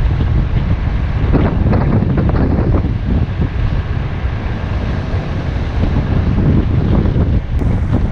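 A car drives along an asphalt road.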